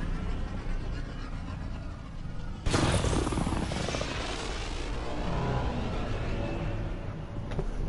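Spacecraft thrusters roar loudly, then slowly fade as the craft flies away.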